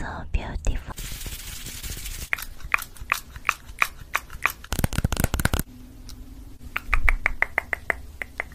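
A young woman's hands rustle and tap close to a microphone.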